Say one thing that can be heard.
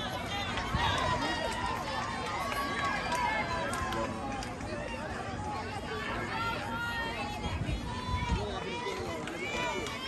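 Several young women shout and chant loudly outdoors.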